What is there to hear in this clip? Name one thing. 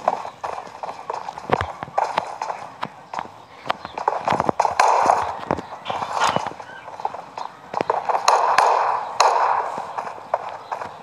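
Footsteps crunch quickly on sand and hard ground.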